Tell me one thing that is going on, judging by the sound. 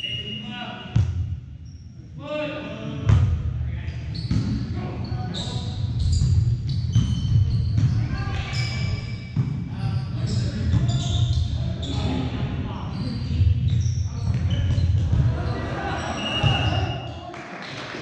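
A volleyball is struck with sharp smacks that echo through a large gym.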